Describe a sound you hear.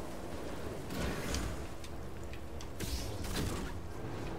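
Sparks crackle and sizzle as a blade cuts through metal.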